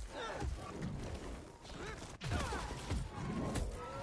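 A burst of flame whooshes and roars.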